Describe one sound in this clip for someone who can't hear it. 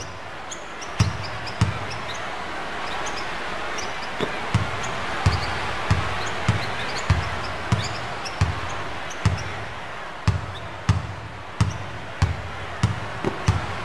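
A basketball is dribbled on a hardwood court.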